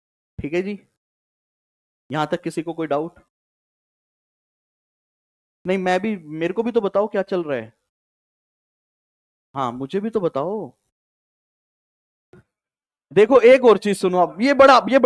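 A man lectures calmly into a close microphone, in short bursts with pauses.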